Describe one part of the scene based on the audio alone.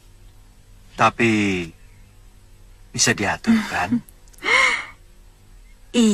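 A man speaks warmly, close by.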